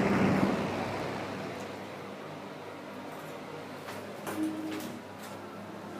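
An exhaust fan whirs steadily nearby.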